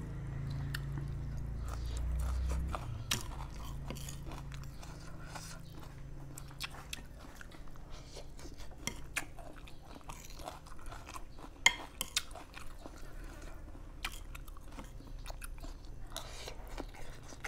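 A man chews and slurps food close by.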